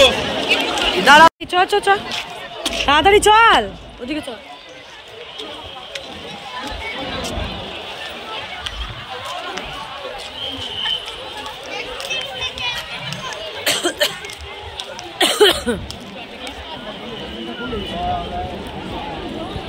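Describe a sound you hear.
A crowd of men, women and children chatter and call out nearby outdoors.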